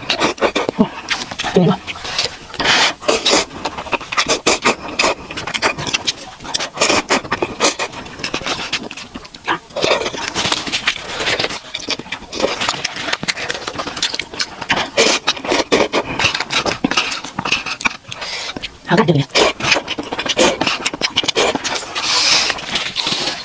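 A young woman chews food noisily up close.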